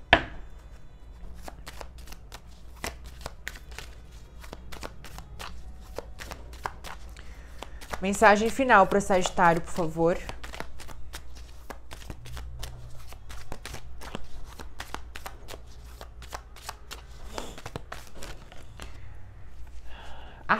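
Cards riffle and flick as they are shuffled.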